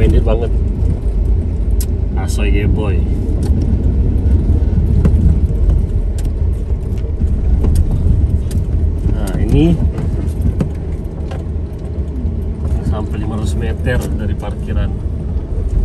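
A car engine rumbles low as a vehicle drives slowly.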